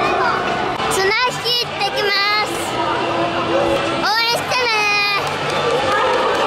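A young boy laughs and shouts excitedly close by.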